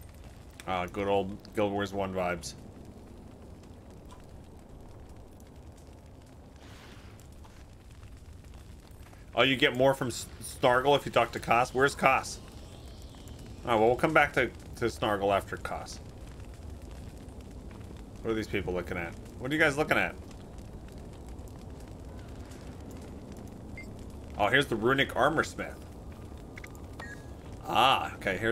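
A man talks calmly and casually into a close microphone, in short bursts with pauses.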